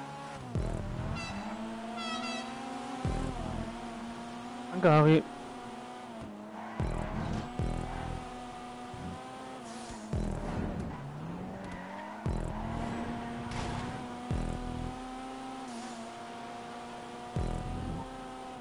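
Tyres screech on tarmac as a car slides sideways.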